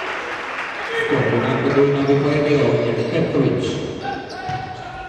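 A small crowd cheers and shouts.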